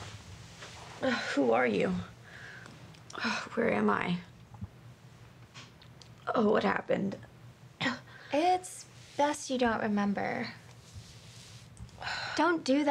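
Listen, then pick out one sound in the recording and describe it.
A young woman speaks in an upset, tearful voice close by.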